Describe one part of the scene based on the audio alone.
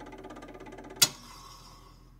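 A gramophone's needle lifts off the record with a sharp click.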